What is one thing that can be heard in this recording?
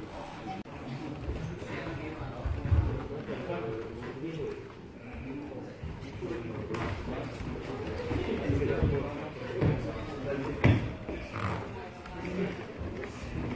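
A woman speaks calmly nearby in an echoing hall.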